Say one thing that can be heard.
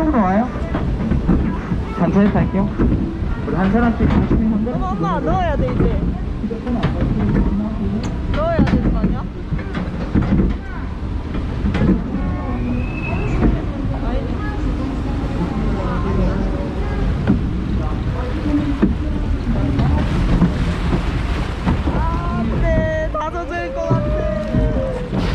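A ride boat rumbles and clatters along its track.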